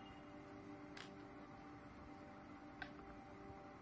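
Small beads click softly as they are threaded onto a needle.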